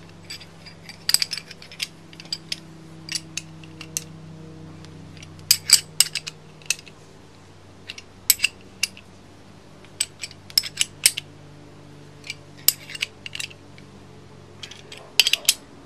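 Metal tools clink and clatter against each other.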